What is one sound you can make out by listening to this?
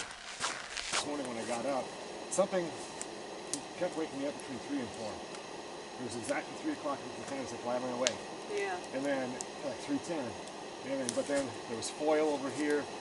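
A man talks with animation outdoors at night.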